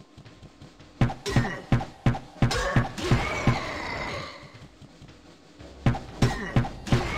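Sword blows land with heavy, sharp thuds.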